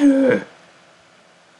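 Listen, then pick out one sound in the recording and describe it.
A young man speaks briefly and loudly into a microphone.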